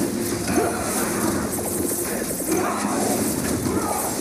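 Explosions burst with a roar.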